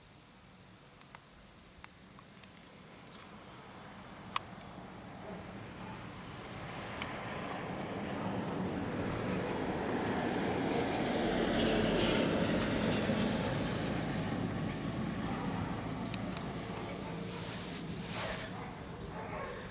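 A puppy rustles and sniffs through grass and soft toys close by.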